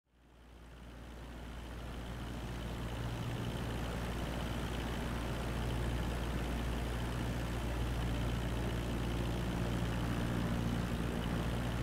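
A small propeller plane's engine drones steadily, fading in at the start.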